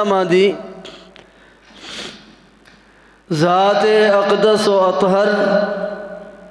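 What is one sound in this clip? An elderly man chants a long melodic recitation into a microphone, with a pause for breath.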